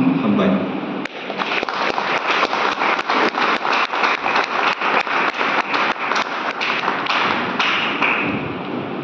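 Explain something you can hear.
Footsteps thud across a wooden stage.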